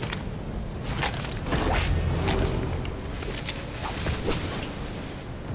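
Dry leaves rustle and crunch loudly.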